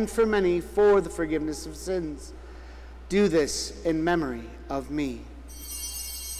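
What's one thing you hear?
A man recites slowly through a microphone in a large echoing hall.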